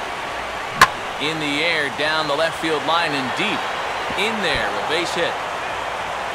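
A stadium crowd cheers loudly.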